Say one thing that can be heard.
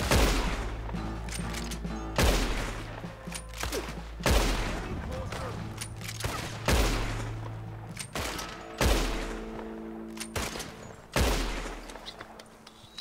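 A rifle lever clacks as it is worked.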